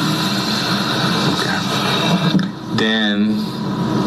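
A man talks quietly on a phone nearby.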